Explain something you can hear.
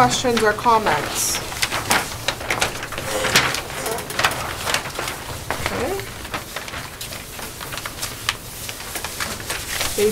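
Paper rustles as large sheets are unfolded and handled.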